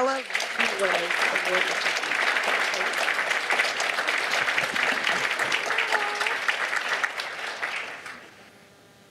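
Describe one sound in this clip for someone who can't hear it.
An audience applauds and cheers loudly in a large room.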